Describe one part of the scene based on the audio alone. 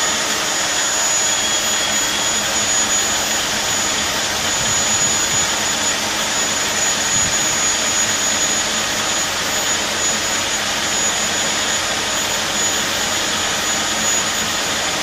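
A boring machine grinds steadily as its cutter bores into metal.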